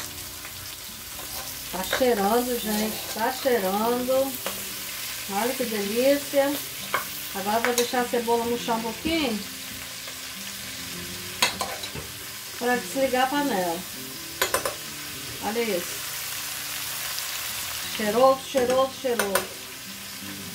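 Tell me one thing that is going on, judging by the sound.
A metal spoon scrapes and clinks against a cooking pot.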